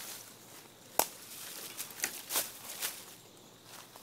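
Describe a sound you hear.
A stick scrapes and knocks among dry leaves.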